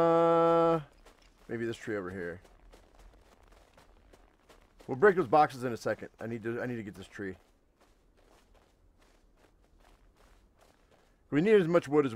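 Footsteps crunch through snow and dry grass at a steady walking pace.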